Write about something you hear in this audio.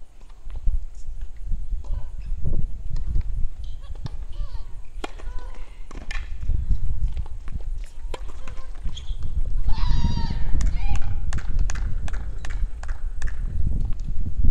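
Tennis balls are struck back and forth in the distance.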